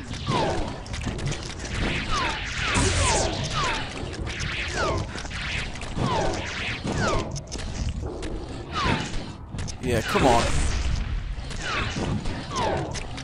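A video game's plasma gun fires in repeated falling zaps.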